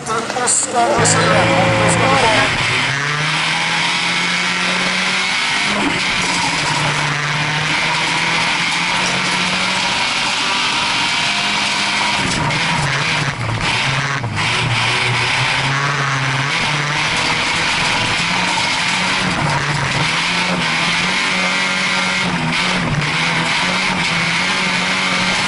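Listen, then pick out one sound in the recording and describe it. A rally car's engine roars loudly from inside the car, rising and falling as it shifts gears.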